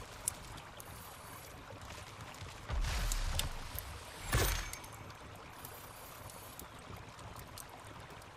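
Soft interface clicks sound as menu items are selected.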